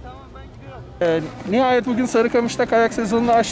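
A man speaks close to a microphone, outdoors.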